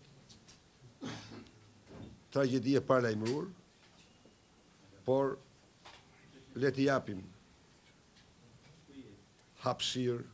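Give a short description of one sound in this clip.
A middle-aged man speaks slowly and deliberately into microphones, with pauses.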